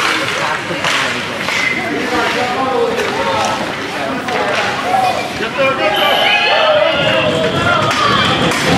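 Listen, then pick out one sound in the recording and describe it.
Children shout and cheer in a large echoing rink.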